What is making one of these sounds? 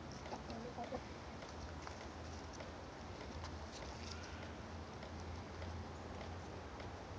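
Chickens scratch and rustle in dry leaves.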